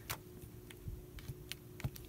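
Paint dabs softly onto paper.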